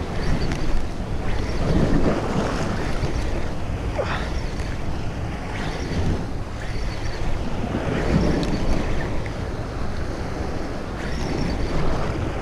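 A fishing reel clicks and whirs as it is cranked quickly.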